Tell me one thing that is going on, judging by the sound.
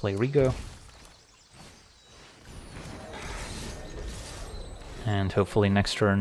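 Magical whooshing and chiming effects sound as a card is played.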